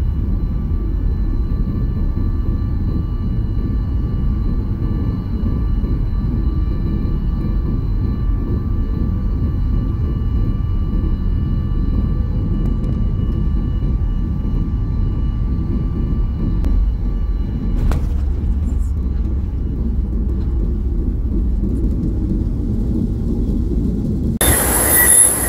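Jet engines roar steadily inside an airliner cabin with a low rumble.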